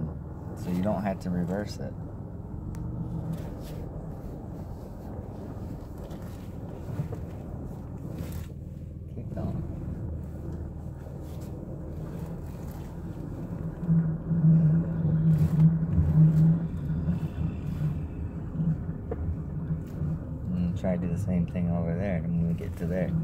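A car engine hums low, heard from inside the cabin while driving.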